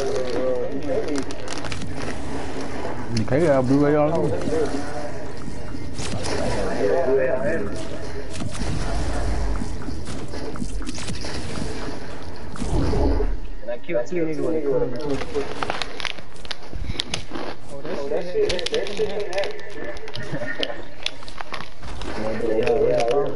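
Footsteps patter quickly on grass and gravel.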